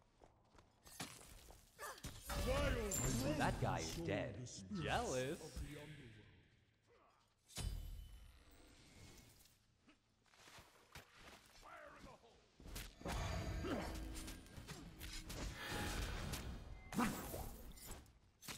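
Magic blasts boom and crackle.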